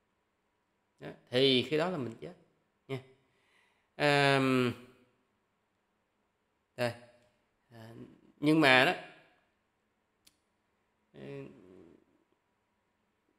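A young man speaks calmly and closely into a microphone, in short phrases with pauses.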